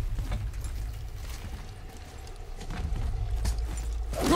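Heavy footsteps crunch over rubble and stone.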